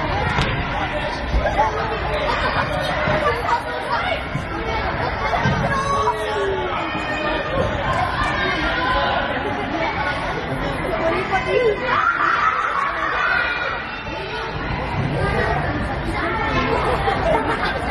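Children shout and call out during play in a large echoing gym.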